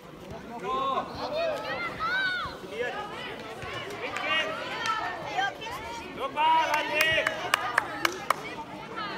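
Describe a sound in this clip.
Young boys shout and call out across an open field.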